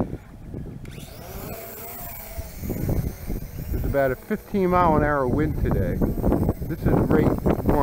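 A small drone's propellers whine loudly as it takes off and hovers close by.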